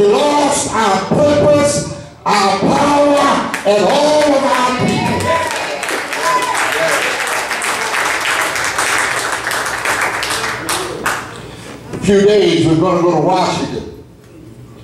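An older man preaches loudly and with passion through a microphone.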